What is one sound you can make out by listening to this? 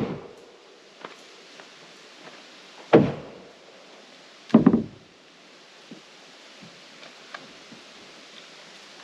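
Footsteps crunch on rough ground outdoors.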